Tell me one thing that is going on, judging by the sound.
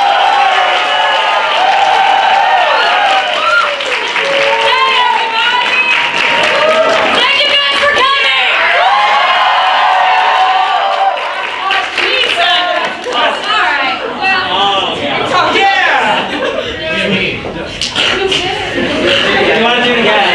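Young people laugh and cheer loudly.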